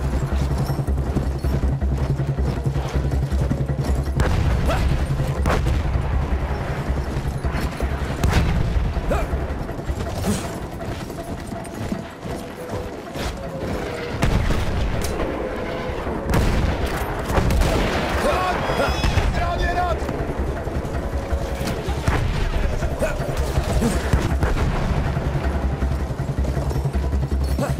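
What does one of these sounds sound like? A horse gallops with heavy, rapid hoofbeats.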